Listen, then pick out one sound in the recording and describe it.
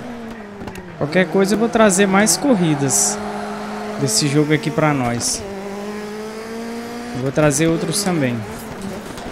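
Tyres screech as a rally car slides through corners.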